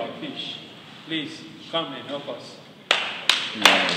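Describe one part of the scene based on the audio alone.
A man speaks loudly with animation in a large echoing hall.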